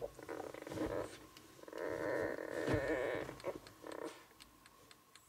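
Young puppies whimper and squeal close by.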